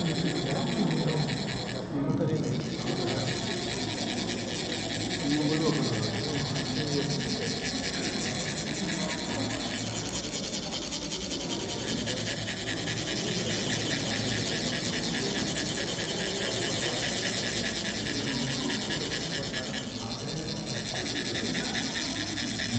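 Metal funnels rasp steadily as sand trickles out in a fast, even scraping.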